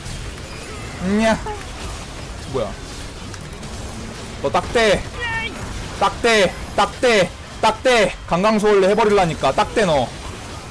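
A young man talks excitedly into a microphone, close up.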